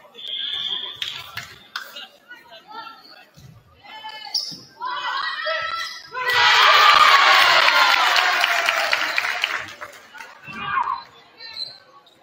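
A volleyball is hit with sharp smacks in a large echoing gym.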